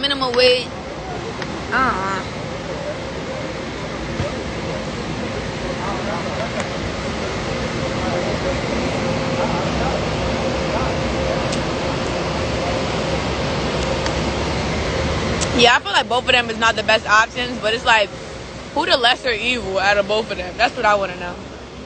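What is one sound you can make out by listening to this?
A young woman talks casually, close to a phone microphone.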